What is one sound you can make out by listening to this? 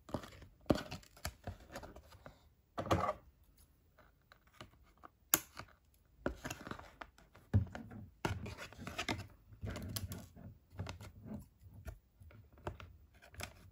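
Scissors snip through thin cardboard.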